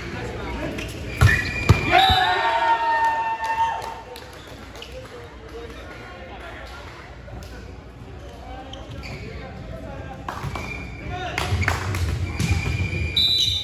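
Young men call out and shout during play.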